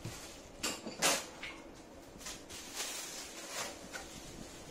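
A plastic bag rustles and crinkles as it is pulled open.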